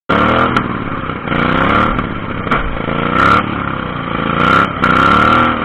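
A lawn mower engine revs loudly up close, rising and falling in pitch.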